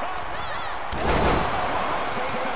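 A body slams heavily onto a wrestling ring.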